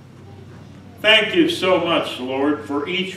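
An elderly man speaks loudly and with emphasis into a microphone.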